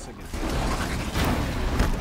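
A bowstring twangs and an arrow whooshes.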